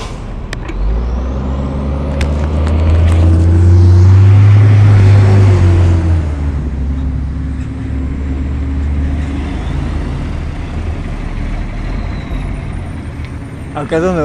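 A bus engine rumbles loudly as the bus pulls away and passes close by.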